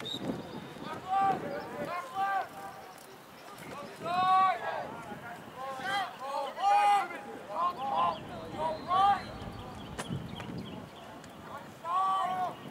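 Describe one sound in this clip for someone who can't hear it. Young men on a sideline shout loudly nearby.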